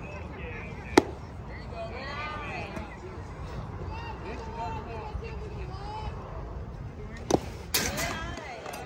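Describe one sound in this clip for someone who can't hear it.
A baseball smacks into a catcher's mitt.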